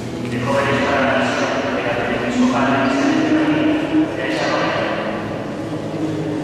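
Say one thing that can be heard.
A large crowd sings together in an echoing hall.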